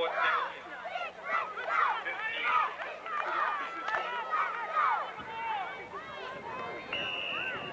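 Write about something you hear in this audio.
Young boys shout to each other outdoors on an open field.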